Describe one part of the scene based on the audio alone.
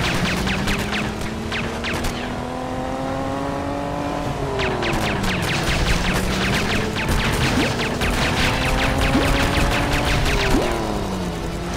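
A small motorboat's engine hums as it speeds across water.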